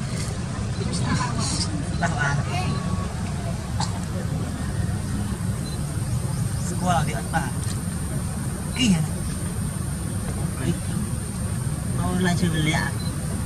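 A baby monkey squeals in short high cries nearby.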